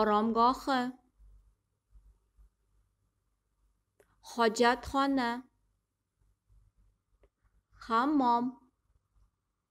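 A young woman speaks calmly and clearly, close to a microphone, in short separate words.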